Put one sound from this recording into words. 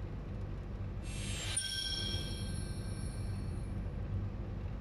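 A sparkling game chime rings as a star is awarded.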